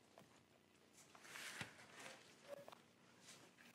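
Paper rustles as pages are handled.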